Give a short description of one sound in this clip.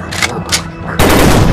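A machine gun fires a rapid burst.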